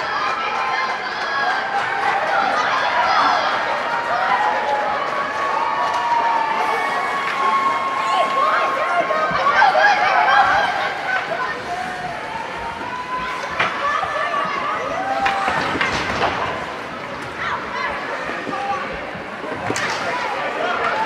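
Young children shout and call out across a large echoing rink.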